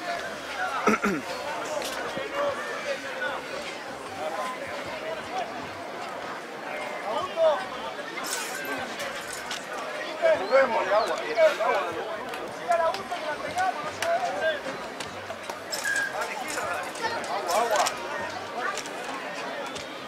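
A crowd of spectators chatters and calls out outdoors.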